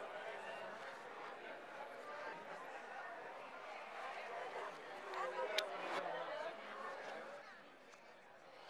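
A crowd of men and women chatter in an echoing hall.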